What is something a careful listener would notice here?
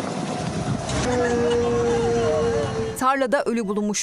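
A woman wails and sobs nearby.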